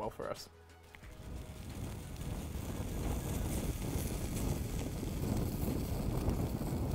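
Food sizzles and crackles in a hot pan close to a microphone.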